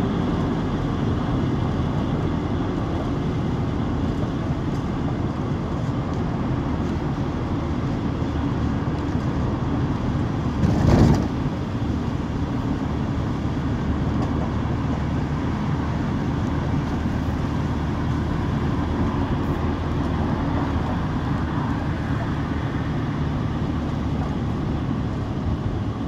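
A car drives steadily along a road, its engine and tyres rumbling from inside.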